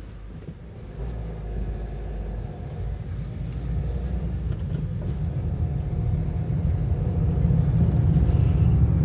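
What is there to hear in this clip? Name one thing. A car engine speeds up as the car pulls away and rumbles louder.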